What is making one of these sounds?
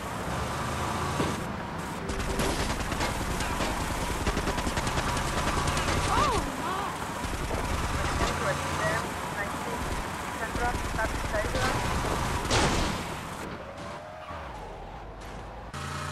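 A car engine hums and revs steadily.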